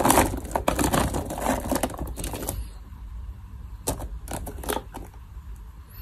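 Small plastic figurines clatter as a hand rummages through them in a plastic box.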